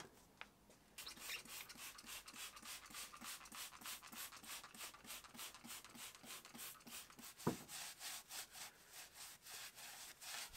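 A brush scrubs rapidly over metal.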